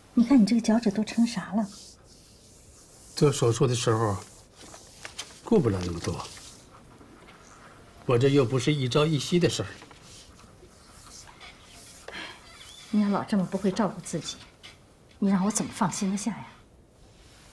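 A middle-aged woman speaks calmly and with concern, close by.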